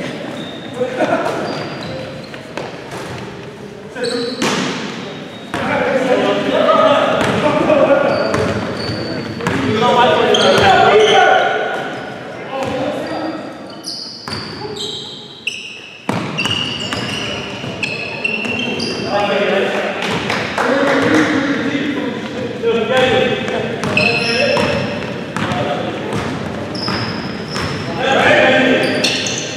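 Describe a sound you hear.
Basketball shoes squeak sharply on a gym floor.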